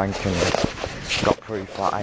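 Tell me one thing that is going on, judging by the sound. Fingers rub and knock against a microphone close up.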